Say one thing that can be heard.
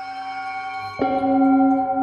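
A mallet strikes a metal singing bowl once with a soft, ringing clang.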